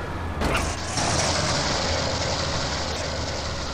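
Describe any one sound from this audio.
Metal scrapes and grinds along pavement.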